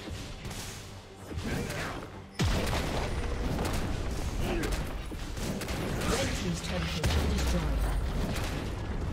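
Game combat sounds of spells and strikes clash rapidly.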